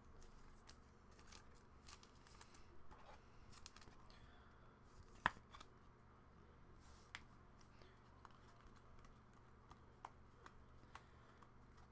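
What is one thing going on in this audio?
Trading cards rustle and click as they are shuffled by hand.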